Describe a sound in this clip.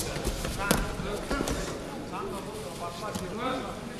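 A judoka's body thuds onto a judo mat.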